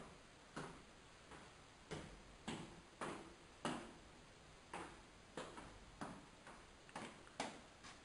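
Footsteps thud on wooden stairs.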